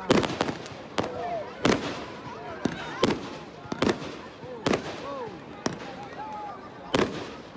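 Firework rockets whistle as they rise.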